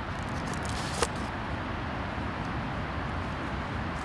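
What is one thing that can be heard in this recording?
Paper rustles close by.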